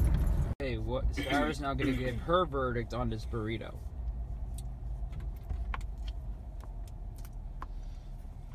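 A car engine hums low and steady inside the car.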